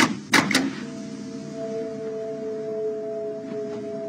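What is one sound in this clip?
A man presses lift buttons with soft clicks.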